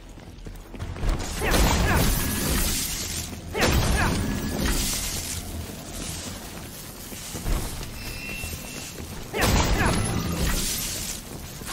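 Blades slash and clash in a fast fight.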